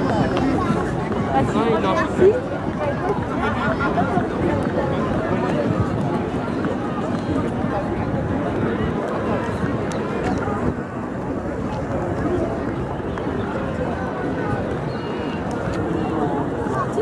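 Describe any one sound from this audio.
Pony hooves clop on pavement.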